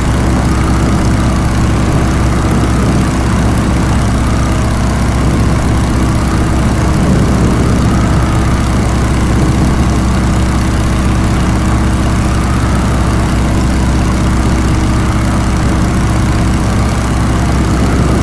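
Wind rushes past an open cockpit.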